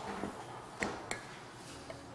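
A glass jar clinks against a counter.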